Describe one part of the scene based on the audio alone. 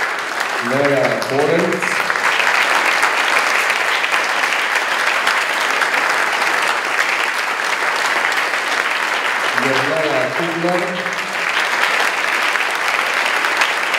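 A large crowd applauds steadily in an echoing hall.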